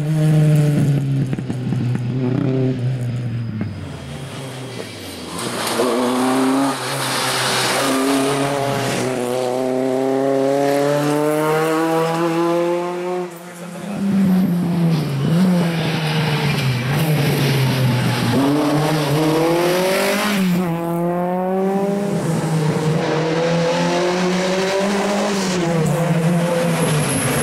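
A racing car engine roars and revs hard, climbing through the gears as it speeds past.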